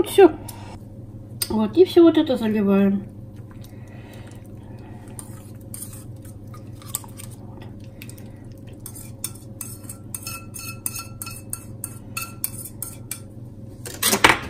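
A metal whisk clinks against the rim of a bowl.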